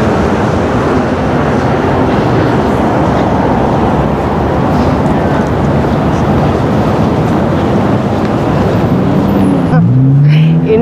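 Traffic hums along a busy city street outdoors.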